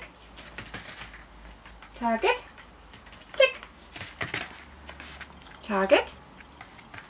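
A small dog's paws patter on a soft mat.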